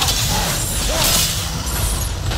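Sparks crackle and burst as a blade strikes stone.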